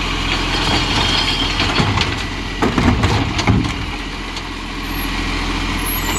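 A plastic wheelie bin thuds and clatters onto the road.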